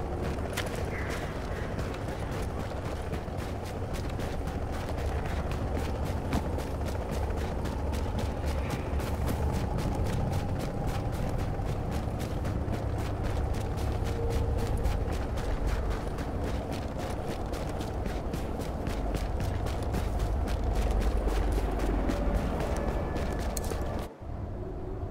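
Footsteps run through snow.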